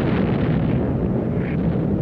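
Heavy propeller engines drone overhead.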